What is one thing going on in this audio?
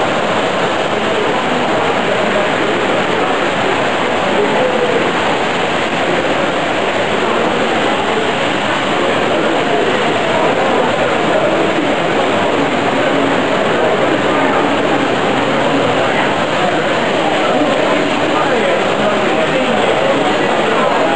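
A crowd murmurs in a large indoor hall.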